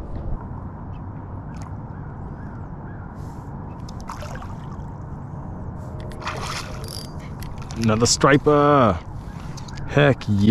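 A spinning reel clicks as a fish is reeled in.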